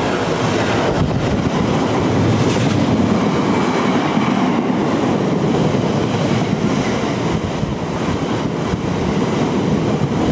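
Freight wagons clatter and rattle rhythmically over the rail joints.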